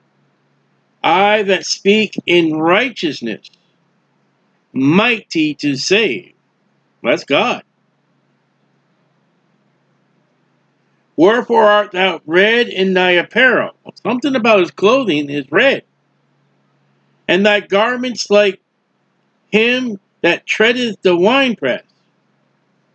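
A middle-aged man speaks calmly and closely into a microphone, in bursts with pauses.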